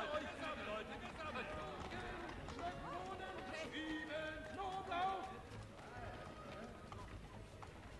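Horse hooves clop on cobblestones.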